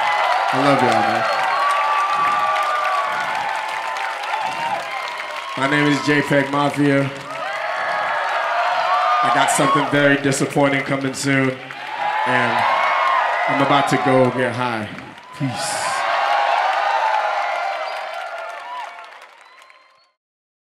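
A large crowd cheers and screams loudly outdoors.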